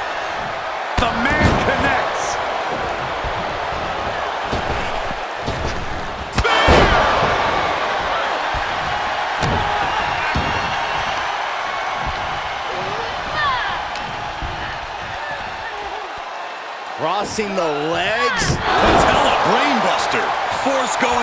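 Bodies slam hard onto the wrestling mat.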